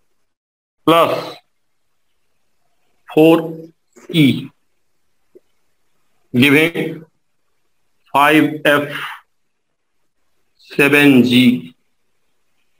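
A man speaks in short, clear phrases close by.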